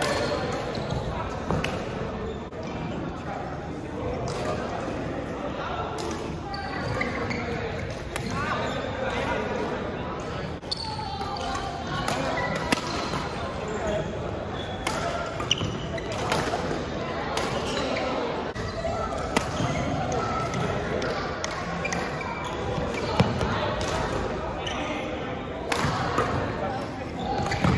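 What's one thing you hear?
Shoes squeak on a hard court floor.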